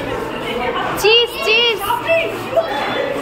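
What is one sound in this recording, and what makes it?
Children cheer and whoop loudly.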